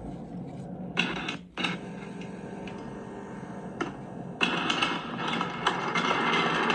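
A mine cart rumbles and clatters along rails through a small speaker.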